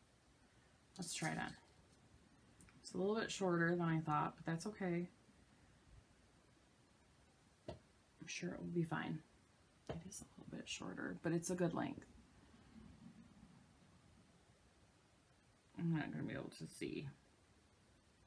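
A woman talks calmly and close by, pausing often.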